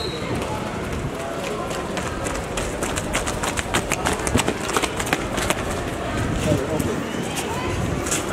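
Several pairs of footsteps run and slap on hard pavement outdoors.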